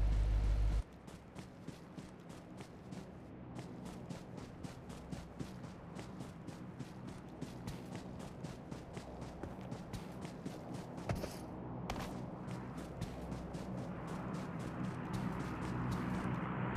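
Footsteps patter quickly through grass.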